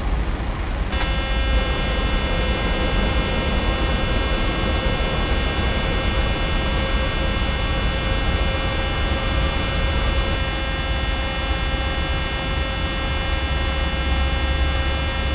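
A jet engine whines with a high, steady whistle.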